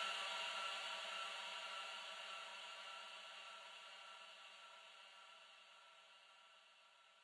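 An old gramophone plays a scratchy record, a held note slowly fading away.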